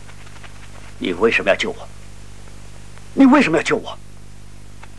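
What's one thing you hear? A man speaks sharply, asking questions with emotion.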